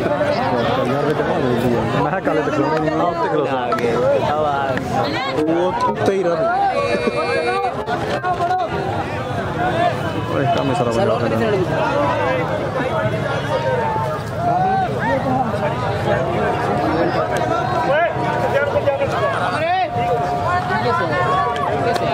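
A large outdoor crowd of men chatters and shouts.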